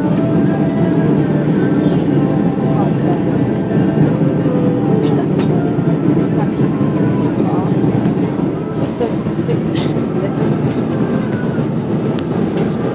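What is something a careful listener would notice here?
Jet engines roar and air rushes past inside an airliner cabin on approach.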